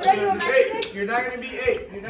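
A teenage boy laughs.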